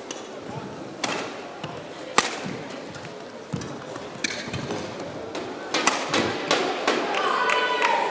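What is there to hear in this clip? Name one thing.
Rackets strike a shuttlecock in sharp, quick hits.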